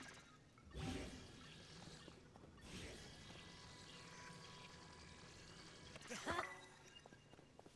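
A young man talks through a microphone with animation.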